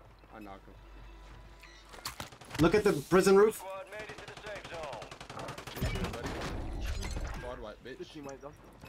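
A man talks with animation into a close microphone, at times shouting.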